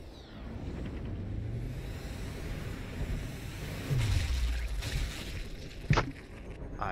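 A bullet whooshes through the air.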